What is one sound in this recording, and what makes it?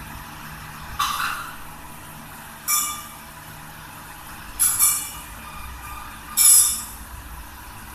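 Small metal vessels clink.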